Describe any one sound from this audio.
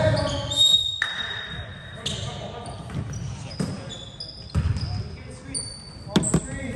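A basketball thumps against the floor.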